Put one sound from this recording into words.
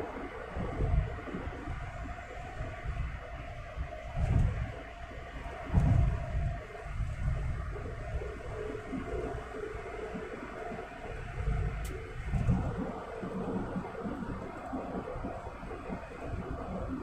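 Tyres roll steadily on a highway, heard from inside a car.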